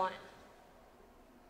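A young woman speaks into a microphone in an echoing hall.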